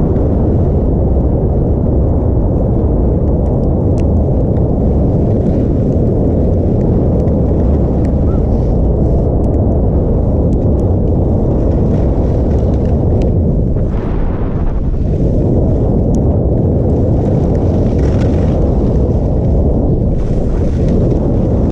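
Wind roars loudly past close by.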